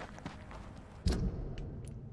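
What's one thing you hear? A soft whoosh sounds as a menu opens.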